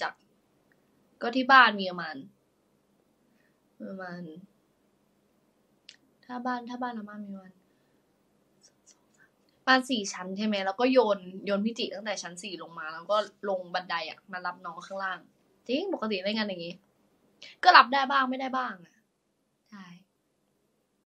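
A young woman talks calmly and close up, as if over a phone.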